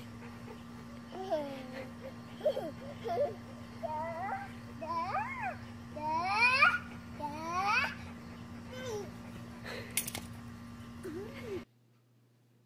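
A toddler squeals and babbles.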